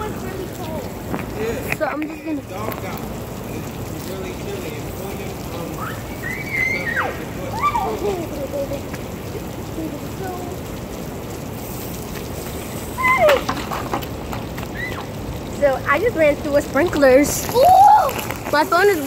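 Water sprays steadily from a hose.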